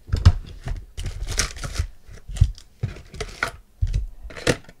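Stacked trading cards riffle and slide against each other.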